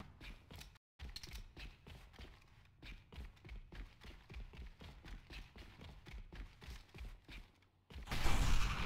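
Footsteps thud steadily in a game.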